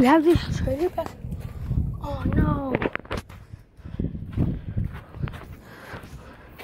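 Cloth rubs and bumps against a microphone up close.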